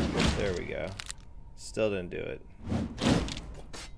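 Weapon blows strike in a quick fight.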